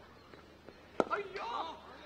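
A cricket bat sharply strikes a ball outdoors.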